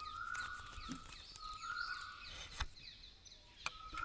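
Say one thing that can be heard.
Wooden sticks clatter as they are handled.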